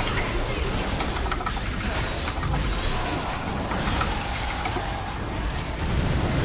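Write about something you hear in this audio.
Heavy blows thud and crash against monsters.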